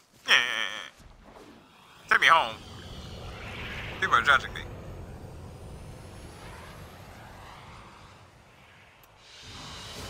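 A spaceship's engines hum as it flies in overhead.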